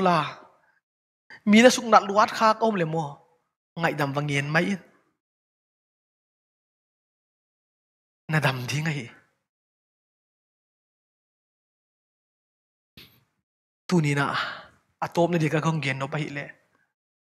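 A man speaks with animation into a microphone, pausing between phrases.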